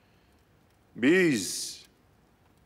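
A man speaks briefly in a low, firm voice.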